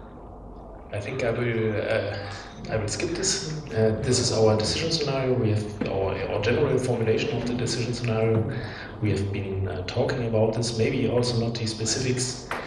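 A young man lectures steadily through a microphone.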